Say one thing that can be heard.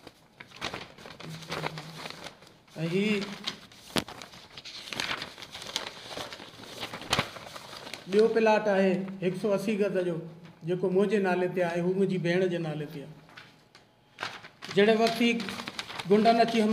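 A man speaks with emphasis into microphones, close by.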